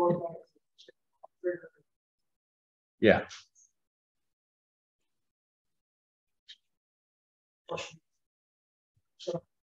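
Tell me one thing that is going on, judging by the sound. A man speaks in short bursts, heard through an online call.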